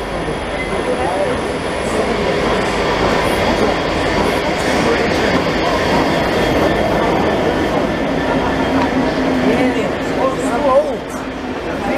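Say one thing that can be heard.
A train rumbles into an echoing station and slows to a stop.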